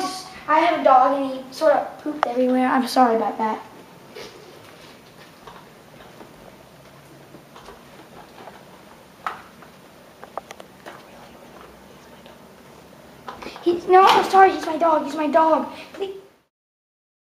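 A child talks close by.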